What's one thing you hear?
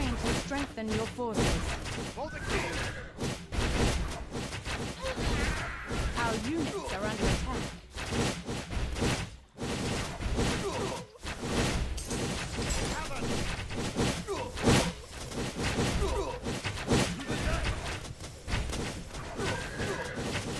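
Game battle sounds of clashing weapons and magic blasts play throughout.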